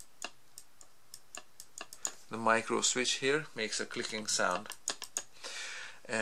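A pencil taps lightly against plastic parts.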